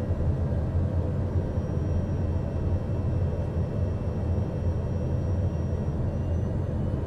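The engines of a small jet hum low, heard from inside the cockpit while it taxis.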